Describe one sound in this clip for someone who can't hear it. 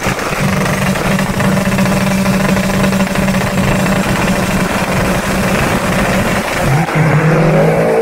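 A car engine revs loudly and roars close by.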